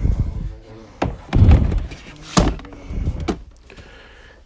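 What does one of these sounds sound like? Plastic boxes knock and clatter as a hand handles them.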